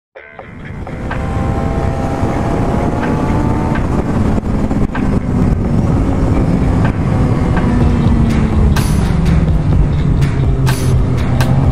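A motorcycle engine roars loudly at high speed.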